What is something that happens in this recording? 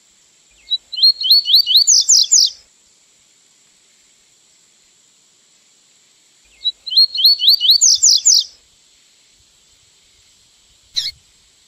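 A small songbird sings a quick, bright phrase of rising whistles, pausing between phrases.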